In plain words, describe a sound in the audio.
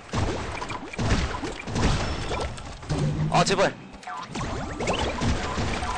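Cartoonish game explosions burst and crackle.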